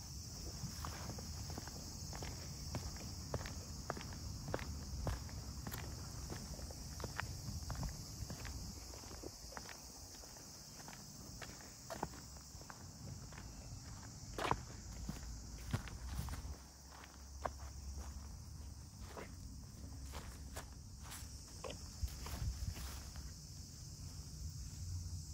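Footsteps crunch steadily on a dirt path outdoors.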